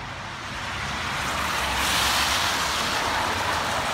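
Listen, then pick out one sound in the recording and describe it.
A car drives by on a wet, slushy road.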